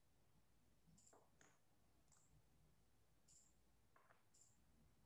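Small game pieces click faintly against a board.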